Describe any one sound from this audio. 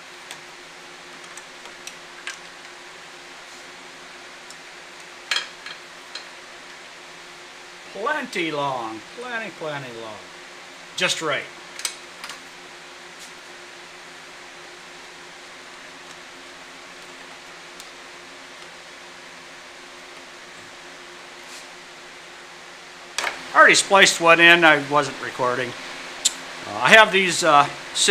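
Light clicks and taps come from handling wires and metal parts.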